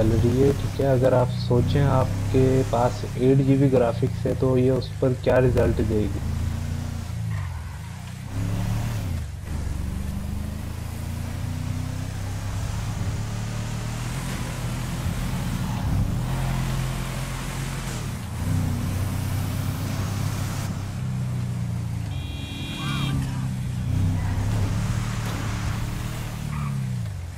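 A truck engine hums steadily as the truck drives along a road.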